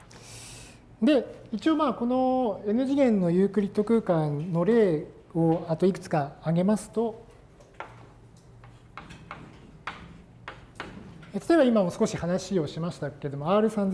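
A middle-aged man lectures calmly to a class.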